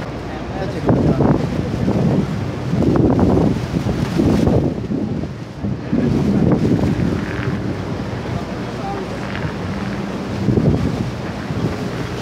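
Rushing water roars nearby.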